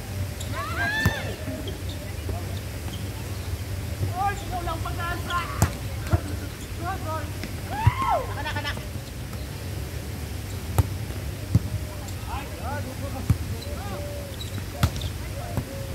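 A volleyball is struck with sharp slaps by players' hands.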